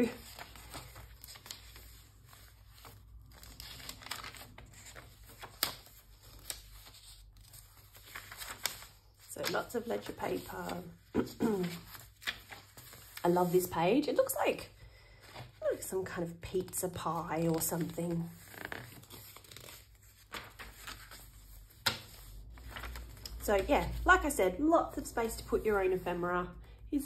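Paper pages rustle and flip as they are turned one by one.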